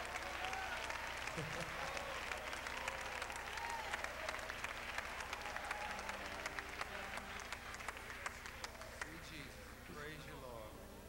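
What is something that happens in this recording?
A crowd claps hands.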